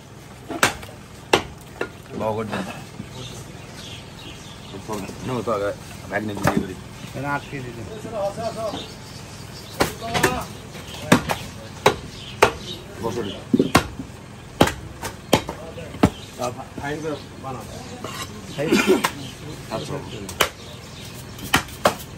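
A cleaver chops through meat on a wooden block.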